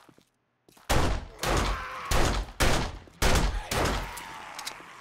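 A pistol fires several loud shots in quick succession, each echoing briefly.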